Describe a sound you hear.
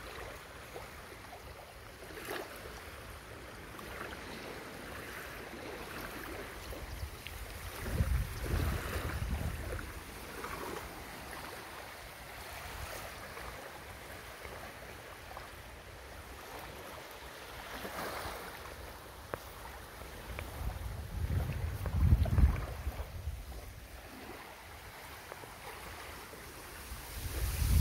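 Small waves lap gently on a sandy shore.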